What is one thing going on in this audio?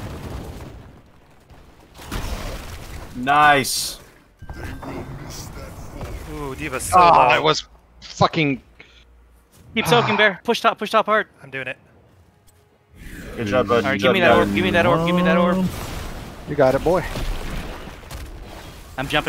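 Magic blasts and weapons clash in a battle.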